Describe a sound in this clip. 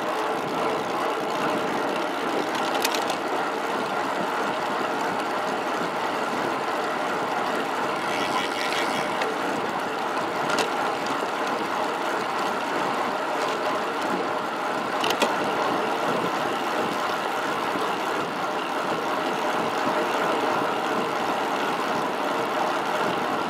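Wind rushes steadily past while riding a bicycle.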